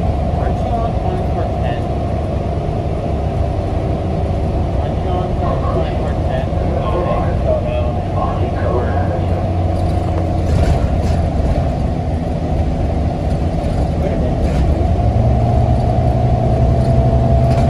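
Tyres roll on the road beneath a bus.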